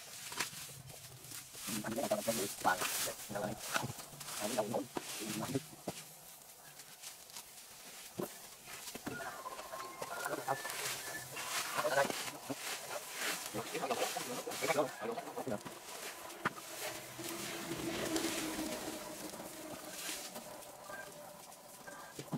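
Rakes scrape and rustle through dry grass and leaves.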